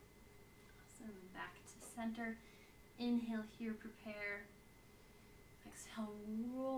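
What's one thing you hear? A young woman speaks calmly into a nearby microphone.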